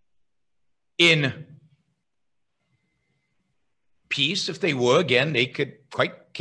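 A middle-aged man speaks with animation into a close microphone over an online call.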